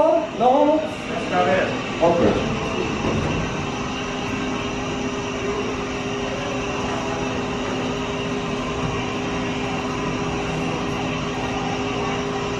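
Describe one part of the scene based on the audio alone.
A pet dryer blows air with a steady roar and whine.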